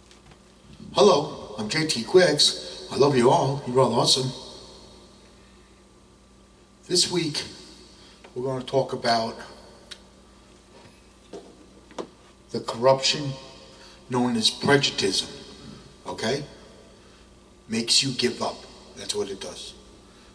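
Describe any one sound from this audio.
A man speaks loudly and with feeling into a microphone, close up.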